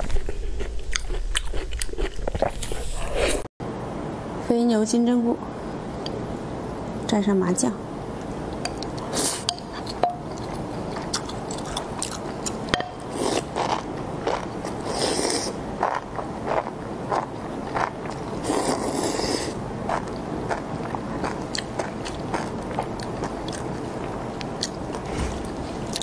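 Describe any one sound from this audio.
A young woman chews food noisily close to a microphone.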